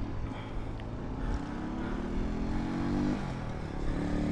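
A motorcycle engine hums as it passes nearby.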